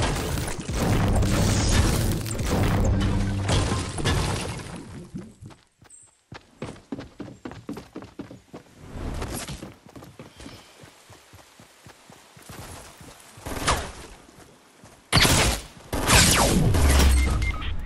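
A pickaxe strikes a wall.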